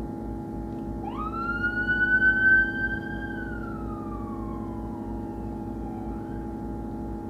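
A siren wails briefly, rising and then falling away.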